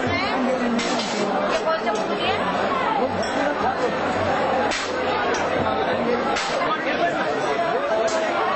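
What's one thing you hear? A dense crowd of men and women talks and shouts all at once, close by.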